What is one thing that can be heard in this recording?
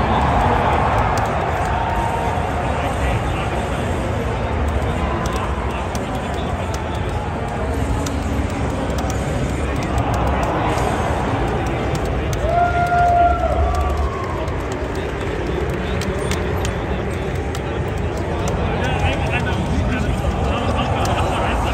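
A fighting video game plays blasts, hits and music through loudspeakers.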